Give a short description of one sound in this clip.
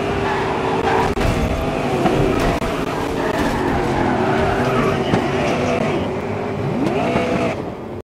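Tyres screech as a racing car slides and drifts.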